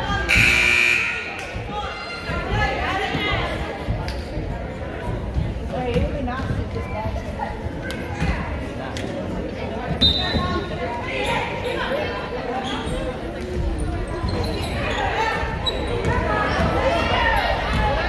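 Spectators chatter and shout in an echoing gym.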